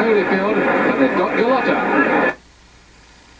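A man talks loudly and with animation, then suddenly stops.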